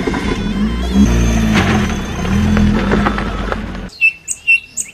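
A car tyre spins on loose dirt.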